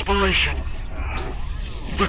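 A flickering hologram crackles and buzzes with static.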